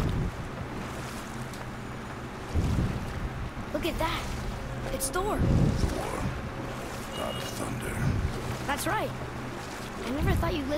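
Oars splash through water in slow, regular strokes.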